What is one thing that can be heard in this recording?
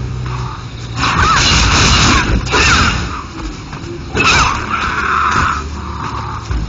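Sword blows clash and whoosh in quick bursts.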